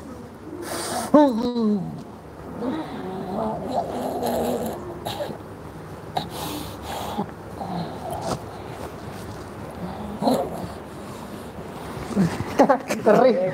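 A man groans loudly in pain close by.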